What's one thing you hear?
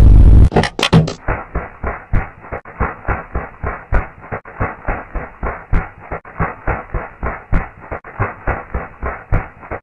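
Footsteps patter quickly and evenly on sand.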